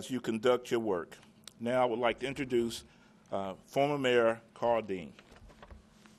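A man speaks calmly into a microphone.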